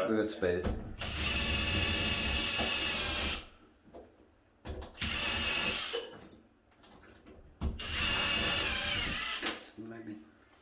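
A cordless drill whirs in short bursts, driving a screw into a wall.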